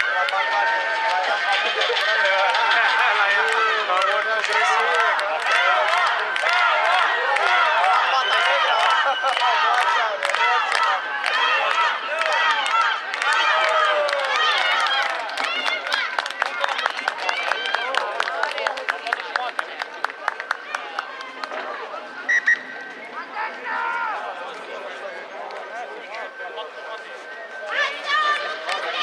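Young men shout and call to each other in the distance outdoors.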